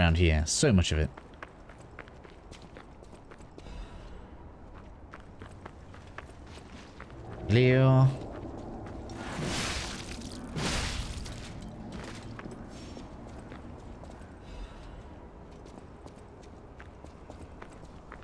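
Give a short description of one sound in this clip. Heavy footsteps clatter on stone.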